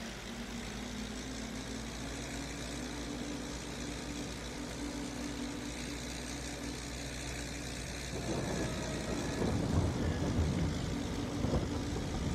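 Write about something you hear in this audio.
A tractor engine rumbles steadily.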